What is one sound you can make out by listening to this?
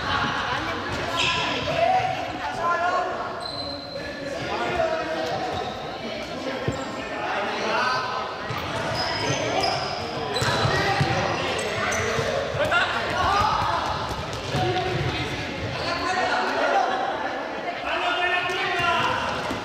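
Young people shout and call out across a large echoing hall.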